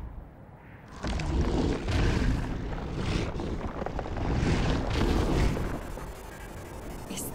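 Ice crackles and grinds as it grows.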